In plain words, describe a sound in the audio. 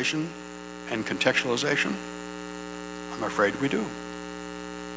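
A middle-aged man speaks calmly into a microphone, heard through a loudspeaker in a large room.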